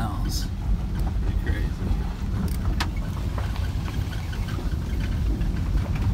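Raindrops tap on a car windshield.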